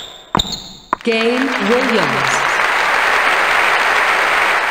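A crowd cheers and applauds loudly.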